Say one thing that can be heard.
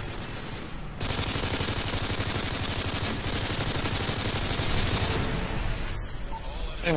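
A video game automatic rifle fires in rapid bursts.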